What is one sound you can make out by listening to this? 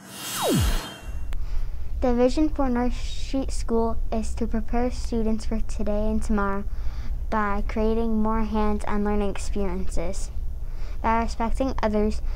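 A young girl speaks clearly into a microphone.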